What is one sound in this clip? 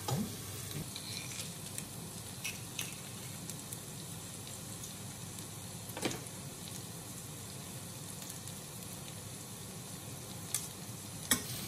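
Onions sizzle steadily in a hot frying pan.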